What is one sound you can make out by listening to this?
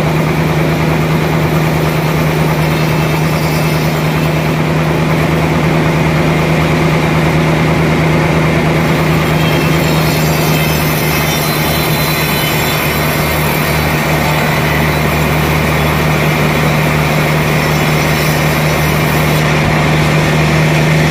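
A large band saw runs with a steady loud drone as it cuts through a log.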